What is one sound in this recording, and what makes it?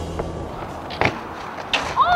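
A bicycle rolls and clatters on pavement outdoors.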